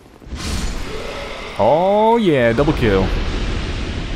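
A blade slashes into a creature with a heavy crash.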